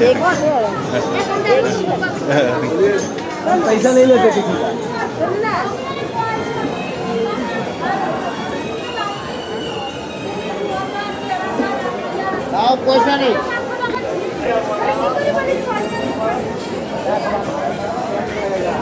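Several men and women talk all around on a busy street outdoors.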